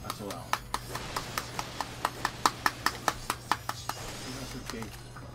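Small metal pieces clink rapidly.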